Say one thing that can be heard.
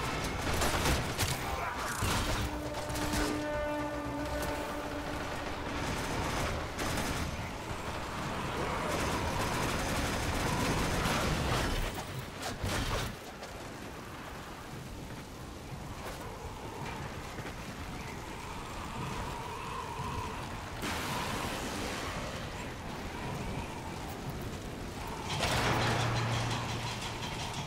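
Melee weapons slash and clang in a fast fight.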